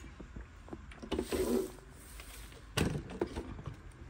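A heavy plastic device is set down on a hard floor with a dull thud.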